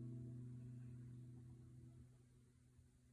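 An acoustic guitar's last chord rings out and fades away.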